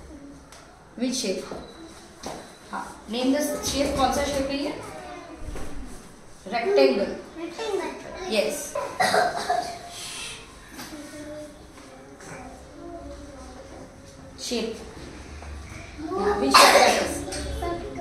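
A woman speaks calmly and clearly to a young child nearby.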